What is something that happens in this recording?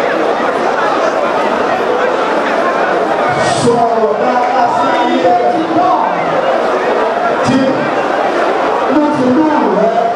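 A crowd of men and women sings together in a large echoing hall.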